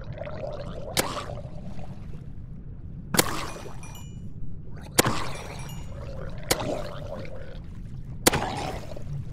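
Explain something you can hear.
Bows fire arrows with sharp snaps.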